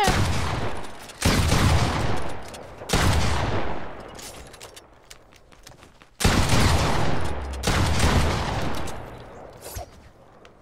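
Loud gunshots boom in quick bursts and ring out.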